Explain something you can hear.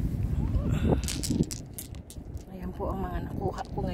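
Small stones clink softly as they are set down on the ground.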